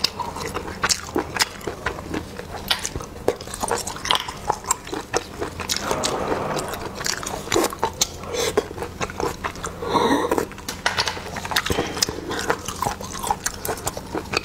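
A young woman chews wetly up close.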